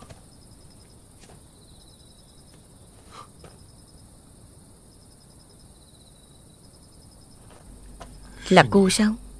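Insects chirp softly in the night.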